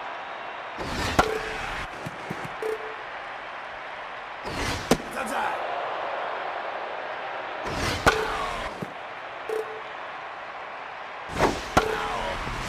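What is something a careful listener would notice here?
A bat cracks sharply against a ball, several times.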